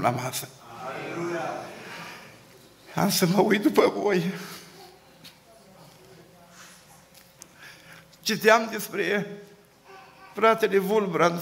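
A middle-aged man preaches with passion through a microphone, his voice echoing in a large room.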